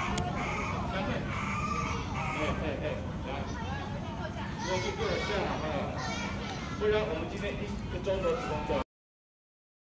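Geese honk and cackle nearby.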